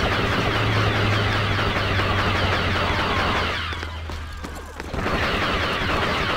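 Laser blasters fire in rapid bursts.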